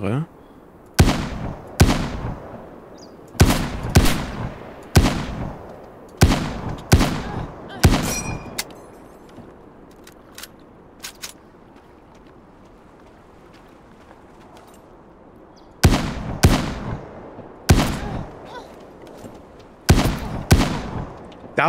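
Rifle shots ring out loudly, one after another, with echoing tails.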